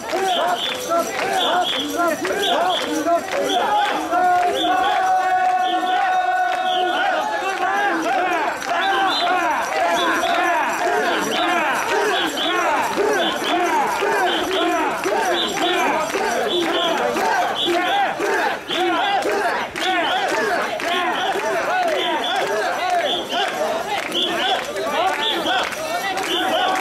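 A large crowd of men chant loudly in rhythm outdoors.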